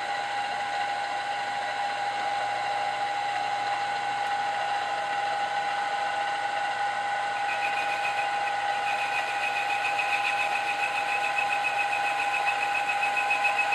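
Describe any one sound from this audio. A milling machine motor hums steadily.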